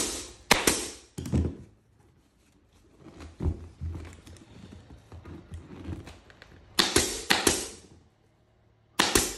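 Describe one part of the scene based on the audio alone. Compressed air hisses from a staple gun after each shot.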